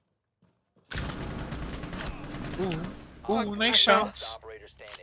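Rapid gunfire bursts close by.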